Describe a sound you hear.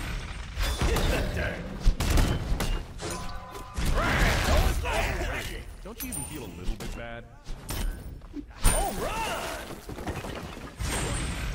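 Game effects burst and crackle with blasts and impacts.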